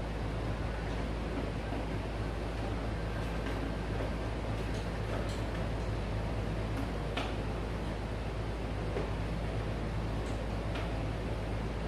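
A cloth rubs across a whiteboard.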